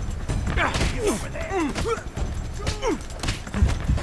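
Fists land with heavy thuds in a brawl.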